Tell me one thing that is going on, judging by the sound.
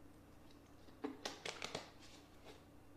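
A plastic water bottle crinkles and crackles in a hand.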